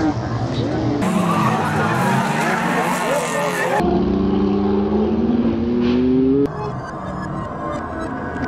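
Car tyres screech on asphalt.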